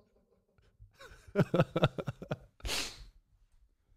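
A young man laughs quietly into a microphone.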